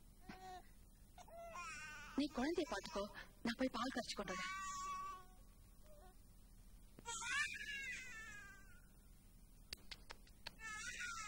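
A young woman speaks softly and tenderly, close by.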